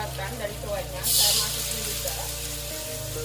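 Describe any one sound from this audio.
Liquid pours into a hot wok and sizzles.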